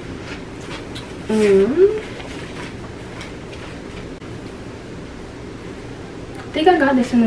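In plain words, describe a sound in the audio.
Fabric rustles as a shirt is pulled over the head.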